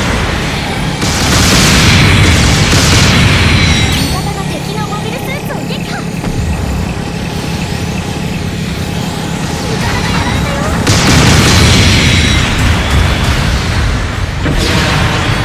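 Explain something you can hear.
Gunfire and blasts crack and boom.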